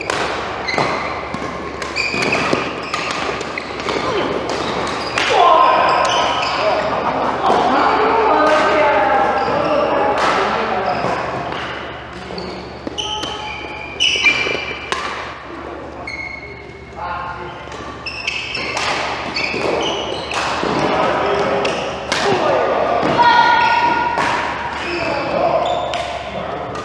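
Rackets strike a shuttlecock with sharp pops, echoing in a large hall.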